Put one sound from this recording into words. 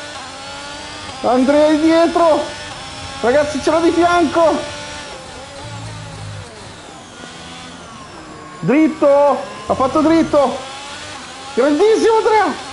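A racing car engine whines and revs up and down.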